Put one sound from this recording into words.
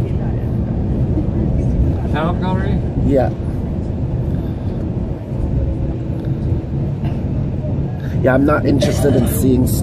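A car's engine and tyres hum steadily on a highway, heard from inside the car.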